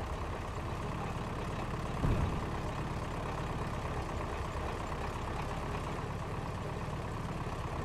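A vehicle engine rumbles in the distance.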